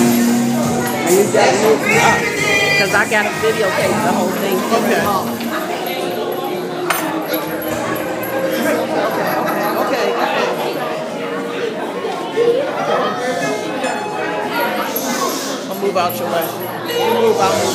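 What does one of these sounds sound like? A crowd of adults chatters and calls out in a large echoing hall.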